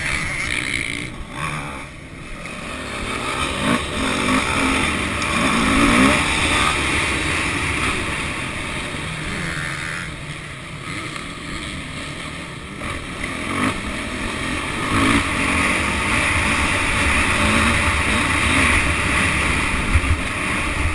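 A motorcycle engine roars and revs up and down close by.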